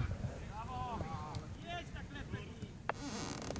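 Players shout to each other in the distance.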